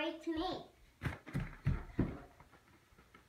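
A plastic ball thumps and bounces on a carpeted floor.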